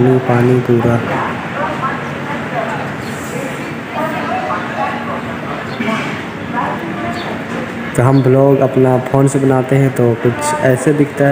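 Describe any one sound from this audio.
A crowd of men and women murmur and chatter in the background.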